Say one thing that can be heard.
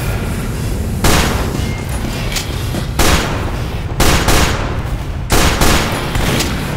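Pistol shots ring out sharply, one after another.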